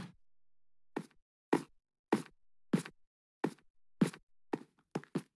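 Footsteps thud at an even pace.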